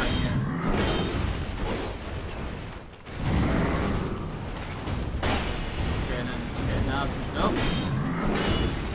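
A warrior splashes through shallow water.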